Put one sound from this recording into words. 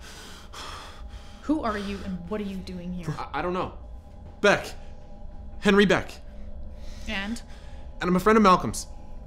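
A young man gasps and groans as he is choked.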